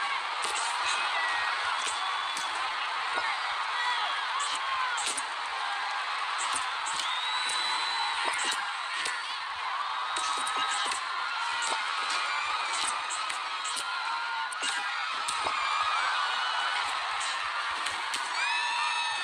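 Punches and kicks land with sharp smacks.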